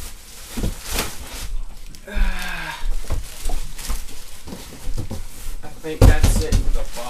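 Plastic crinkles and rustles close by.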